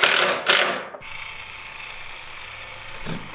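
An electric caulking gun hums steadily.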